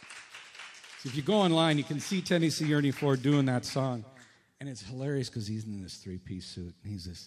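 A man speaks into a microphone in a reverberant hall.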